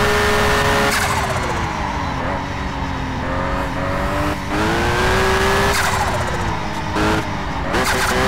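A car engine's pitch falls as the car slows, then rises again.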